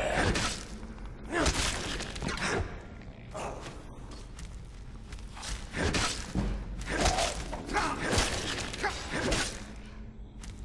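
Weapons swing and strike in a close fight, with sharp clashes and heavy thuds.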